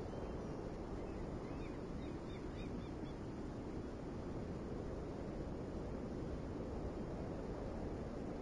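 A large ship's engine rumbles low and steady.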